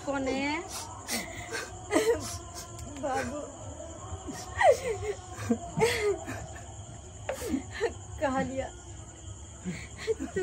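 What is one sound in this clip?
A young woman speaks in a distressed voice nearby.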